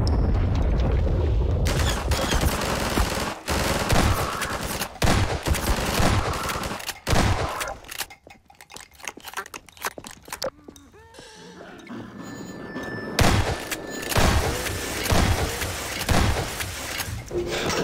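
Gunshots fire in loud bursts and echo.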